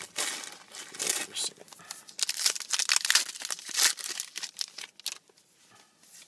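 Plastic wrapping crinkles and tears close by.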